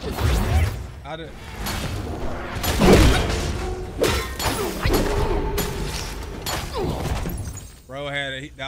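Weapons clash with loud, crackling impacts.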